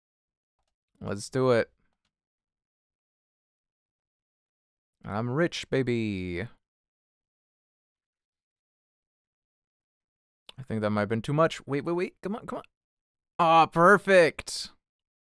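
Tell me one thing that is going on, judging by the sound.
A man speaks casually into a close microphone, in short bursts with pauses.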